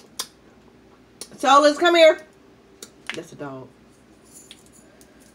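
Crab shells crack and snap in a young woman's hands.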